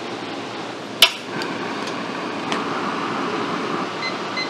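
A gas burner ignites with a click and roars steadily.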